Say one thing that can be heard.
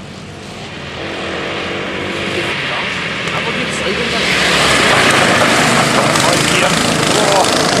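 Go-kart engines buzz loudly as karts approach and race past.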